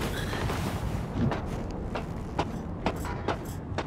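Footsteps clank on metal ladder rungs in a steady climbing rhythm.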